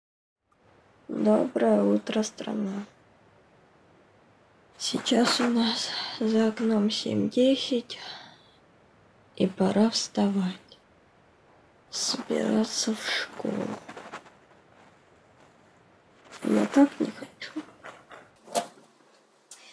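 A girl speaks softly and sleepily, close by.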